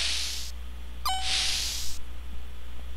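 A sliding door whooshes shut.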